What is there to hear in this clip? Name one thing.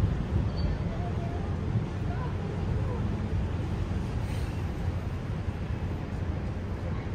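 Traffic rumbles steadily across a city below.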